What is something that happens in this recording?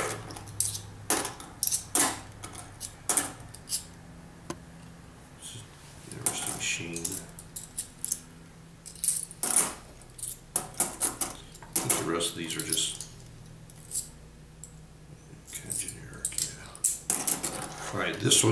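A stack of coins clicks onto a hard surface.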